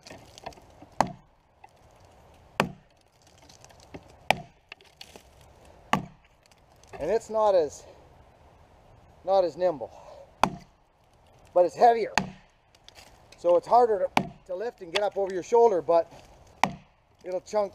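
An axe chops into a log with sharp, solid thuds.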